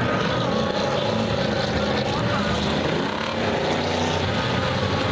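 Race car engines roar steadily around a dirt track outdoors.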